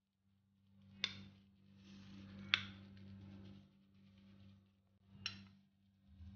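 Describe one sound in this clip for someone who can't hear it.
A metal plate clinks sharply a few times.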